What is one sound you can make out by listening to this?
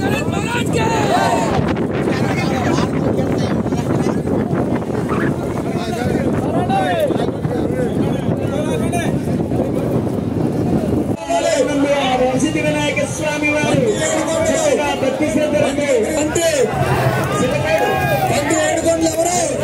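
A large crowd shouts and cheers loudly outdoors.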